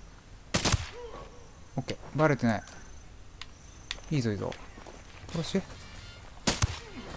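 A suppressed rifle fires single shots.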